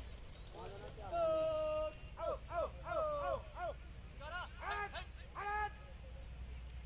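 Men shout and call out loudly outdoors.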